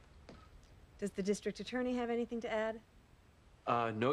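An older woman speaks firmly and clearly nearby.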